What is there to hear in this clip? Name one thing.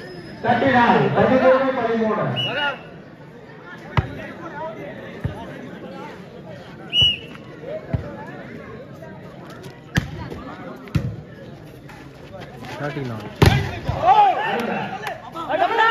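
A crowd outdoors shouts and cheers loudly.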